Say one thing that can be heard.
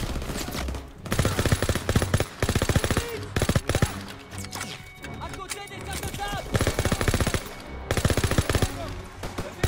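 A rifle fires rapid bursts of loud shots close by.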